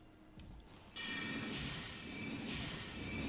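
A magic spell casts with a bright shimmering whoosh.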